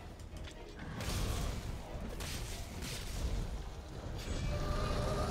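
A blade slashes and clangs.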